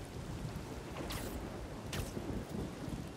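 A rope zips and whooshes through the air.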